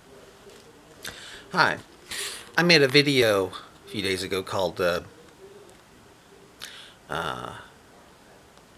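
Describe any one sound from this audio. A middle-aged man talks calmly and close by, in short bursts with pauses.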